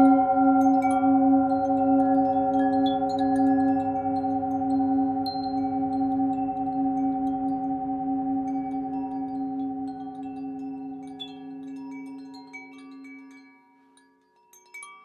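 A singing bowl hums with a deep, steady ringing tone that slowly fades away.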